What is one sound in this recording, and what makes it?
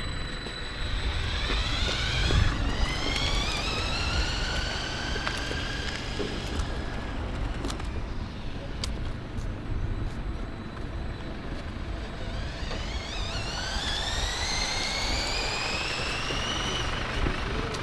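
A small electric motor whines, rising in pitch as a toy car speeds up.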